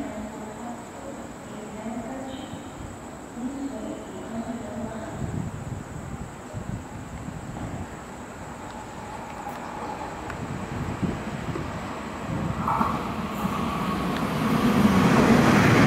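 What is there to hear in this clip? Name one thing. A train approaches on the rails with a low, growing rumble.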